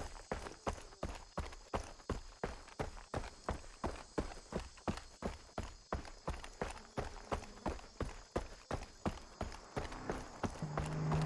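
Footsteps crunch steadily on a gravel road.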